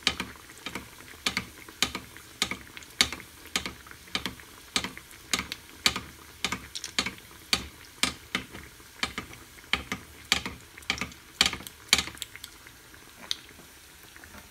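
A metal spoon clinks against a frying pan.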